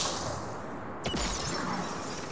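A gun fires a sharp shot.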